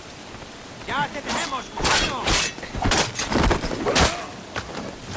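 Swords clash and ring in quick blows.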